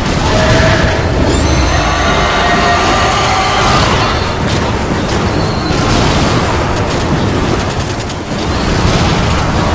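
Energy blasts explode with booming thuds.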